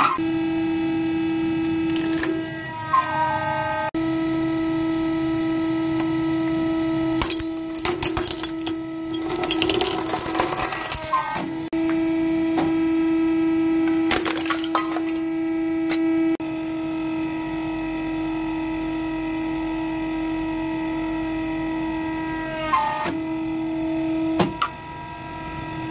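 A hydraulic press hums steadily.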